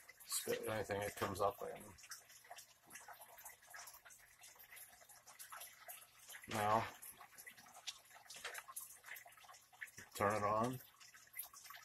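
A man speaks calmly close by.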